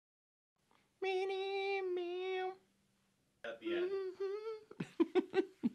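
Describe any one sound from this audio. A man hums a short tune close by.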